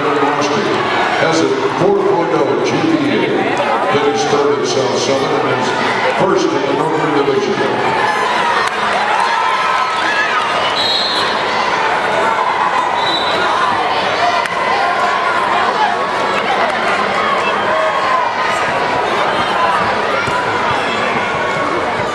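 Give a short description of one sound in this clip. A crowd of spectators talks and shouts in a large echoing hall.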